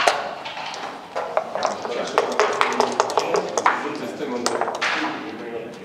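Dice rattle inside a cup being shaken.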